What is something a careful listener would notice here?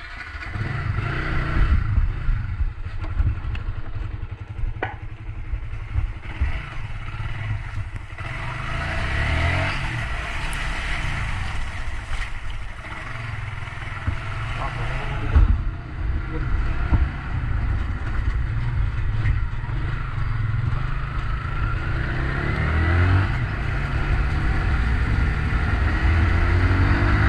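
A motorbike engine rumbles steadily close by.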